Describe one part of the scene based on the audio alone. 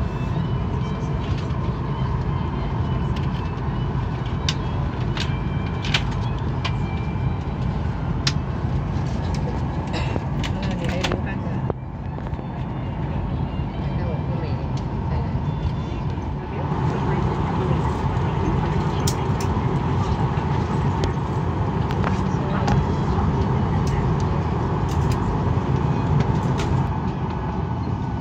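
Aircraft engines hum steadily inside the cabin.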